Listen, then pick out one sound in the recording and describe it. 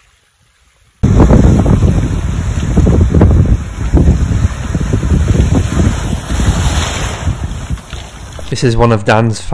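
Waves wash over a pebble beach.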